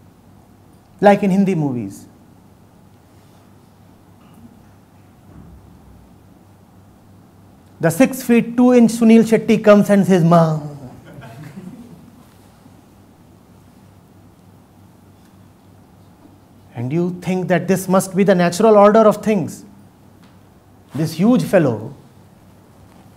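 A middle-aged man speaks with emphasis into a nearby microphone, in bursts with pauses between.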